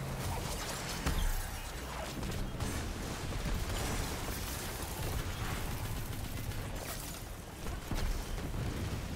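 Explosions boom heavily.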